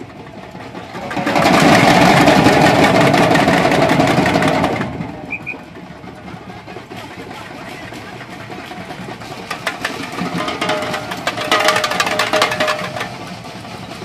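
A samba drum band plays loud, fast drums outdoors.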